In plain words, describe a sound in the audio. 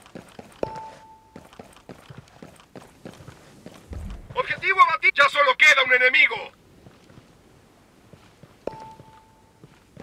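Footsteps scuff quickly on a hard floor.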